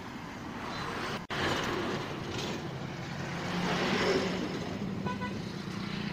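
A truck drives past close by.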